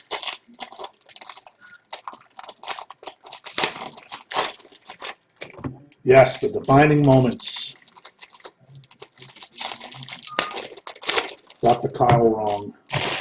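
Foil card packs crinkle and rustle in someone's hands.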